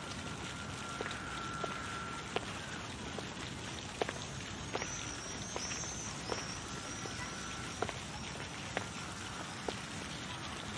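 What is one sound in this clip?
Footsteps tap on pavement at an even pace.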